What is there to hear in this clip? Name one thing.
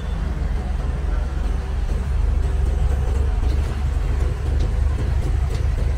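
A motor scooter passes close by.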